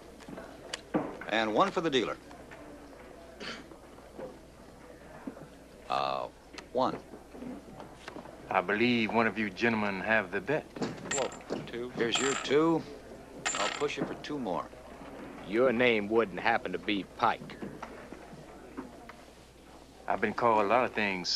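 A man speaks calmly in a low voice, nearby.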